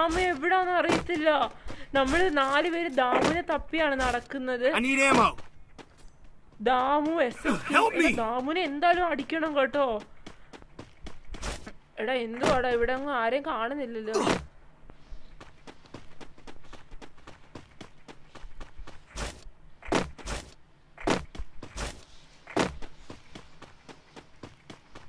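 Footsteps run quickly over hard ground and grass.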